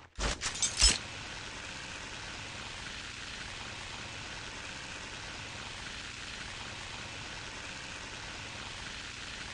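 A zipline pulley whirs steadily along a cable.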